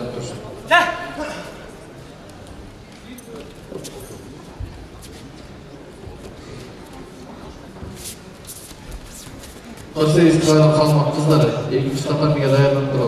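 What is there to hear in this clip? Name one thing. A man shouts from the stands in a large echoing hall.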